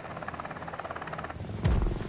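A helicopter's rotor thuds overhead.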